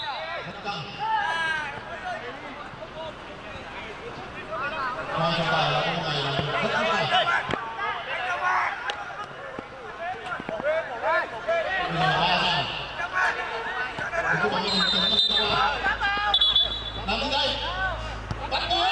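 A football is kicked on artificial turf.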